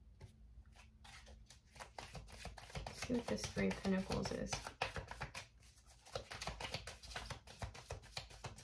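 Cards rustle and flick as they are shuffled by hand.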